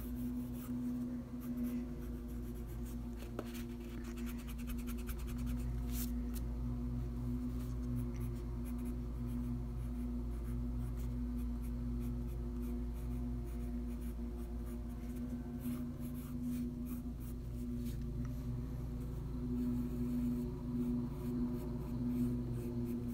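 A pencil scratches and scrapes on paper.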